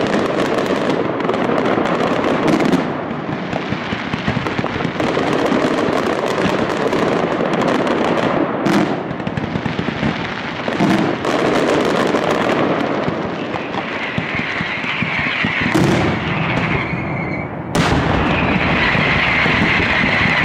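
Firecrackers burst overhead in a rapid, continuous barrage of loud bangs and crackles.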